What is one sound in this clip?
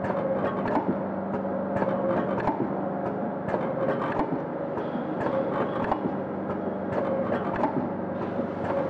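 A packaging machine hums steadily.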